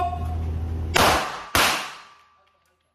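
Two loud gunshots ring out in quick succession.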